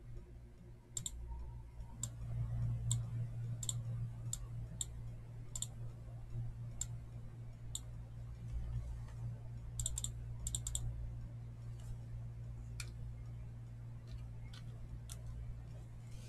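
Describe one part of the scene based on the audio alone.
Trading cards flick and click as a hand shuffles through a stack.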